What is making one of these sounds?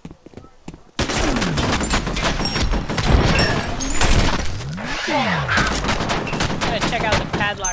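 A rifle fires rapid bursts of loud, echoing shots.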